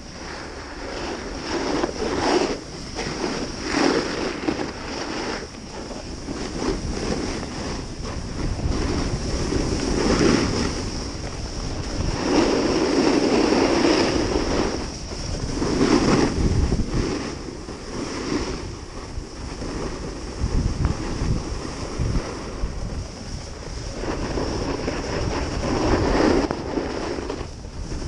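Snowboard edges scrape and hiss over packed snow.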